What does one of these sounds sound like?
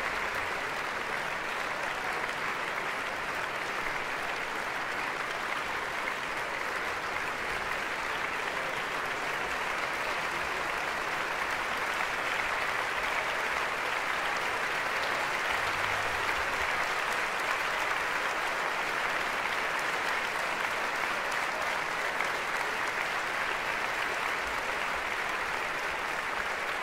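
An audience applauds steadily in a large, echoing hall.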